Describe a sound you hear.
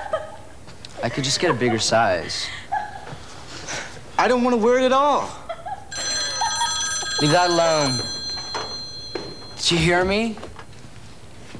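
Another young man speaks calmly, close by.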